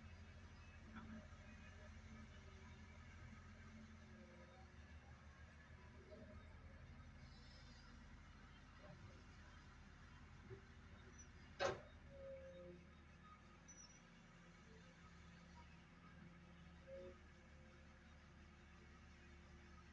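Diesel engines of excavators rumble steadily nearby.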